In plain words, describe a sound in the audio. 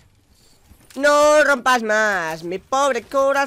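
A young man shouts with animation into a close microphone.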